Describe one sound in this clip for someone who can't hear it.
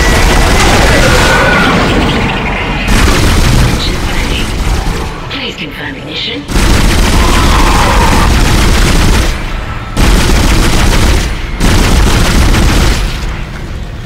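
A weapon fires loud, rapid blasts.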